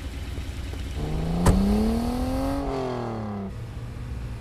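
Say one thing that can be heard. A car engine revs up and then drops as the car pulls away.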